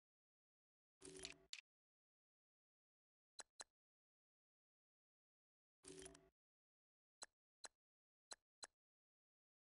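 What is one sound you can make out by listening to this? Short electronic menu blips sound now and then.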